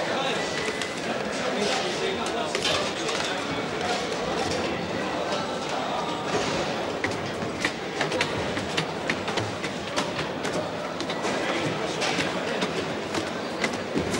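A crowd of men murmurs and talks in a large echoing hall.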